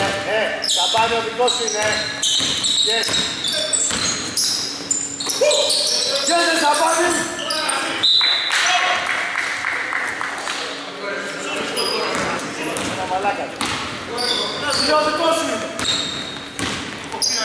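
A basketball bounces on a wooden floor, echoing in a large hall.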